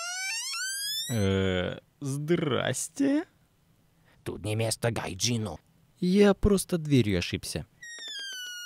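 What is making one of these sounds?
A young man speaks calmly and hesitantly, close by.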